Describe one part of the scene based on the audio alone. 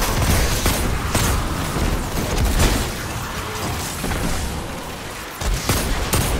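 Gunfire cracks rapidly in bursts.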